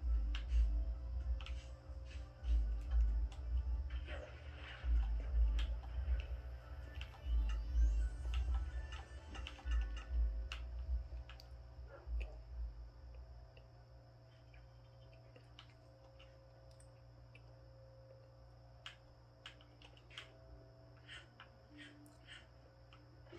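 Video game sound effects play from a television speaker.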